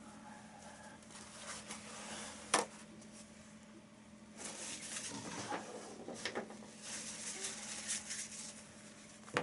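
Paper towel tears and rustles in a woman's hands.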